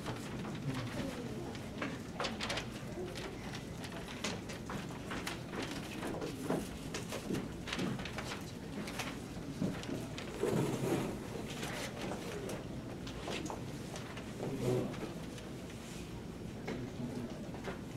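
Sheets of paper rustle and crinkle close by.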